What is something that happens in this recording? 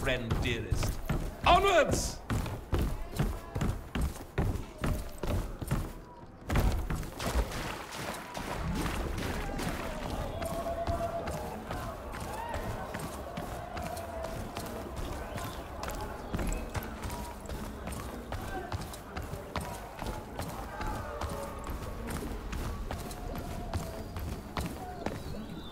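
Quick footsteps thud on wooden and stone floors.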